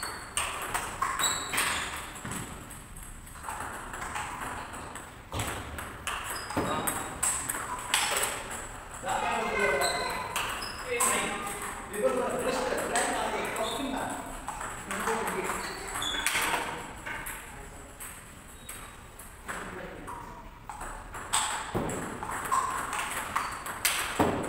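A table tennis ball clicks sharply back and forth off paddles and the table in an echoing hall.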